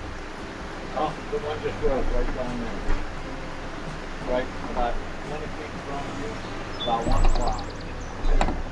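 A man talks calmly close by, outdoors.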